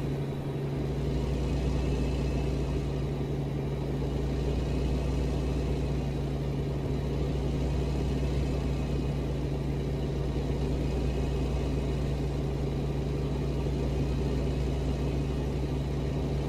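Tyres roll steadily over the road.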